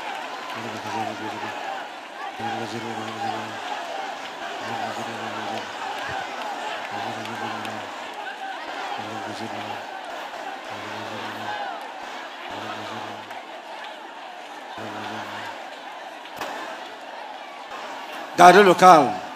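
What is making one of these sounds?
A crowd of men and women pray and sing aloud together.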